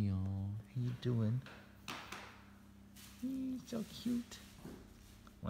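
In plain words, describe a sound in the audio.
A hand rubs and rustles a puppy's fur up close.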